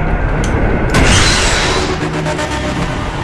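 A loud explosion roars and fades.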